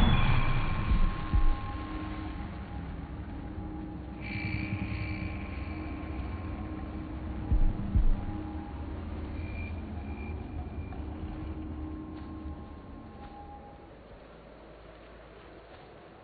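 Wind rushes past a gliding eagle.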